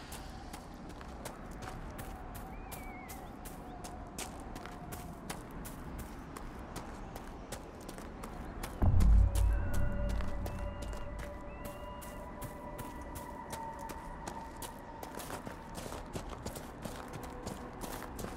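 Footsteps crunch on dry ground at a steady walking pace.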